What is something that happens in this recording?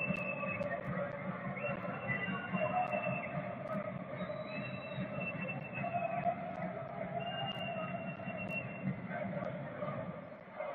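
A crowd in a large open stadium chants and sings steadily.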